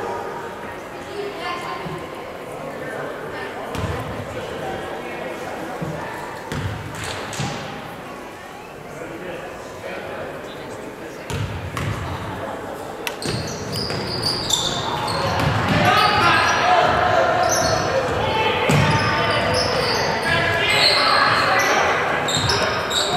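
A basketball bounces on a wooden gym floor.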